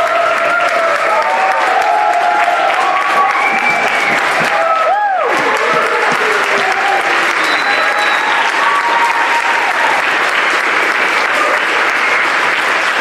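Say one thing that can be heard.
A woman speaks loudly on a stage in a large hall.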